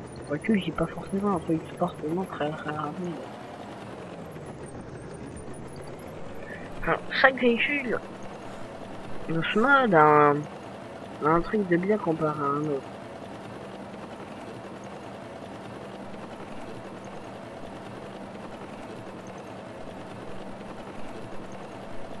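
A tank engine rumbles steadily as the tank drives along a road.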